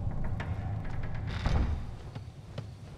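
A wooden door slides open with a thud.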